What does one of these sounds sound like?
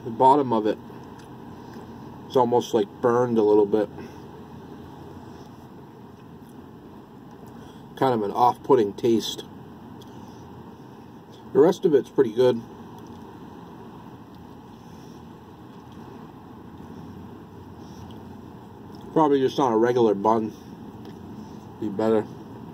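A middle-aged man talks calmly close up.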